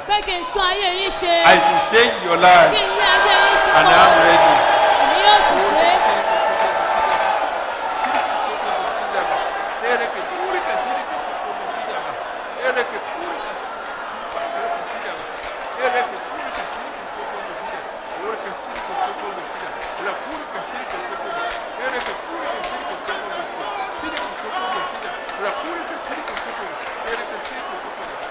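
A crowd of men and women prays aloud and cries out together in a large echoing hall.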